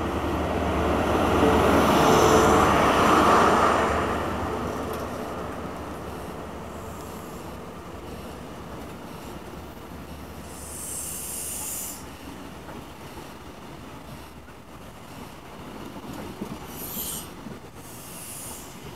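A train rumbles and hums along a platform, loud at first and then quieter.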